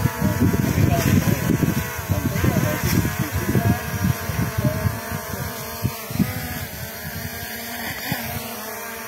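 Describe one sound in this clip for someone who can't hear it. A drone's propellers whine steadily as it hovers close by.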